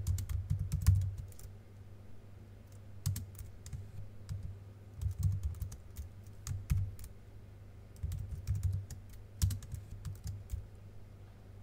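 Keys on a keyboard click in short bursts of typing.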